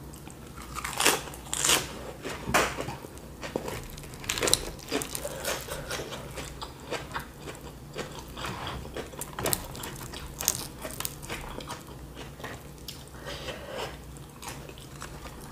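A woman chews food noisily close by.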